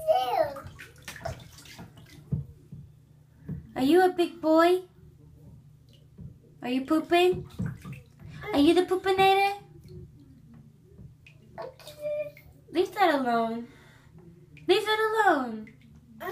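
A toddler babbles and vocalizes up close in short bursts.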